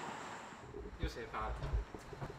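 A young man speaks quietly nearby.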